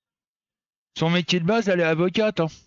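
A middle-aged man speaks close to a headset microphone with animation.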